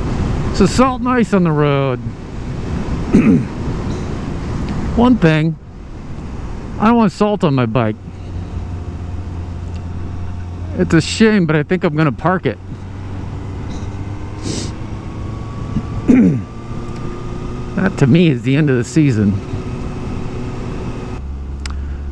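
A motorcycle engine rumbles and revs up and down while riding.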